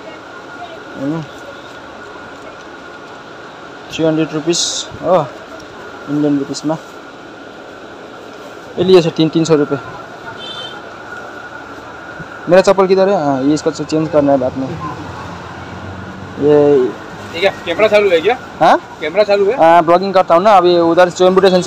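A man talks close by in short bursts.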